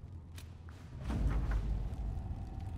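A paper scroll unrolls with a soft rustle.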